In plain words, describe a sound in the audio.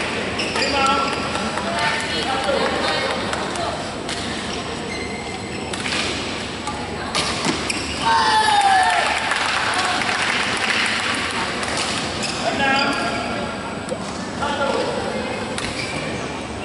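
Rackets strike a shuttlecock in a large echoing hall.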